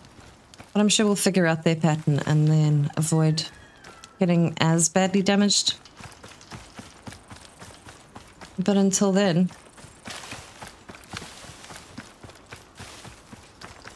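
A horse's hooves thud steadily on grass.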